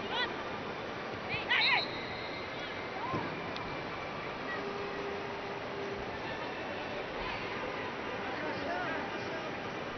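A large stadium crowd murmurs and cheers steadily outdoors.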